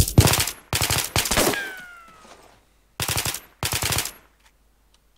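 Rifle shots crack sharply, one after another, with a ringing echo.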